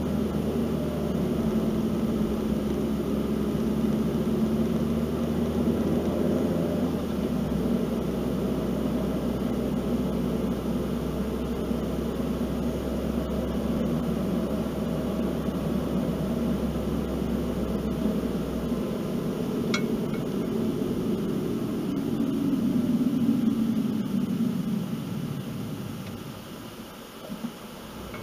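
A car engine hums steadily as it drives, then quiets as it slows to a stop.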